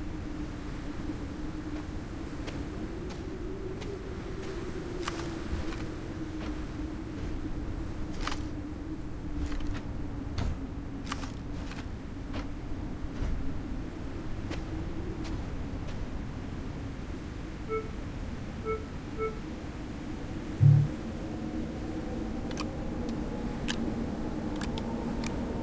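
Footsteps crunch softly on snowy ground.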